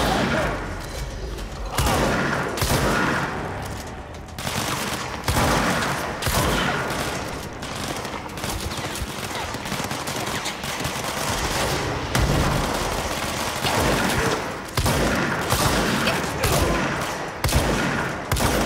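Objects smash and shatter.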